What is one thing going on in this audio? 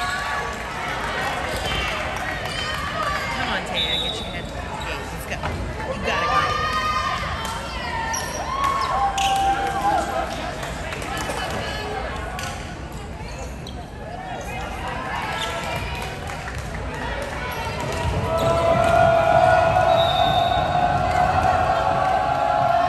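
Young women call out and shout to each other across a large echoing gym.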